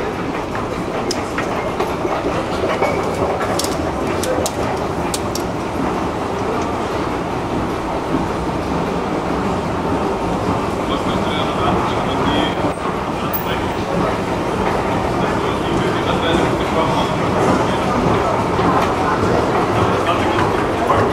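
An escalator hums and rumbles steadily.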